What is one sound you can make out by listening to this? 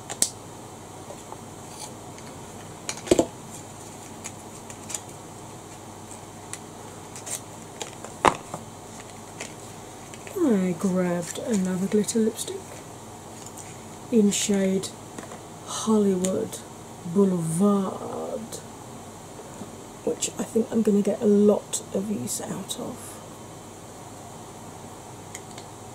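Small items click and tap on a hard surface.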